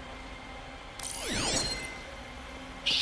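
A high electronic shimmer sweeps through and fades.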